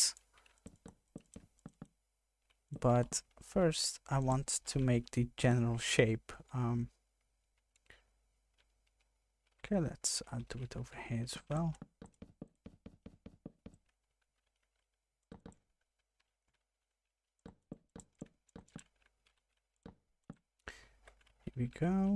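Wooden blocks are set down with short, soft knocks.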